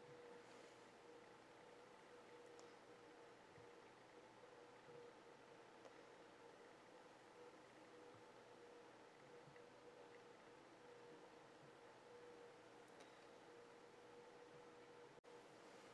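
A paintbrush softly strokes across paper.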